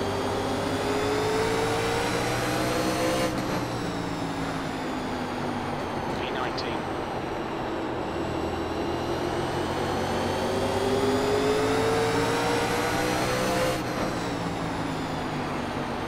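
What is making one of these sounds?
A racing car engine roars steadily, rising in pitch and dropping sharply at each gear change.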